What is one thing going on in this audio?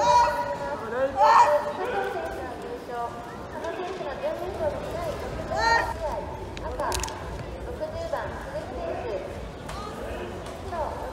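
A crowd of spectators shouts and chatters in a large echoing hall.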